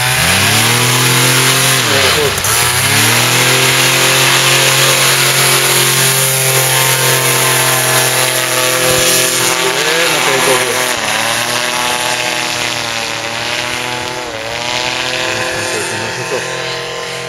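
A paramotor engine roars loudly close by, its pitch rising and falling as it revs.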